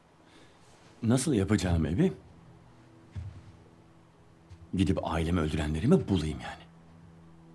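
A young man answers in a low, strained voice.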